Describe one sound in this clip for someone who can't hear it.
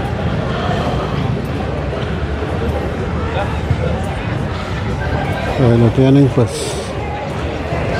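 A crowd murmurs at a distance.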